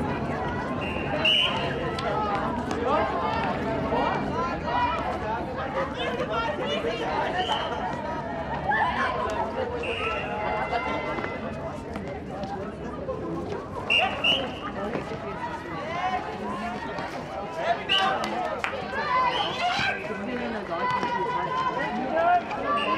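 Young women shout and call out to each other on an outdoor court.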